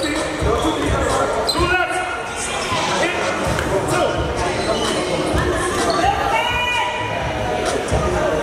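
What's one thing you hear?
Men talk and call out in a large echoing gym.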